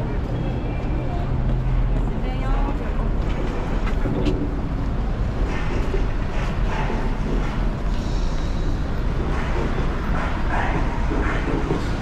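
A bus engine idles and rumbles close by.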